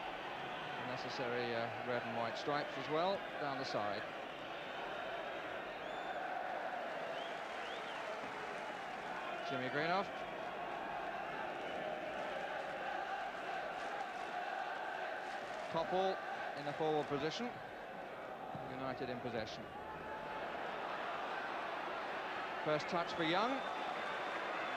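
A crowd whistles and chants in bursts.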